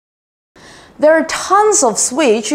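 A woman speaks with animation into a close microphone.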